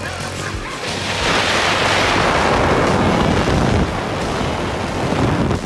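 A snowmobile engine roars as the machine speeds across snow.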